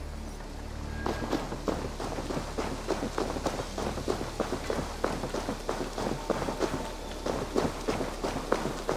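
Footsteps crunch steadily through snow.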